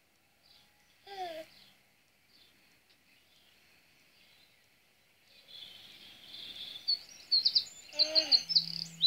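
A baby giggles.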